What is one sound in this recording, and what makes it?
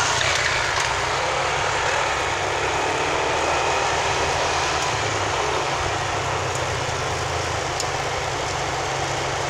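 A car engine hums steadily as the car drives along a road.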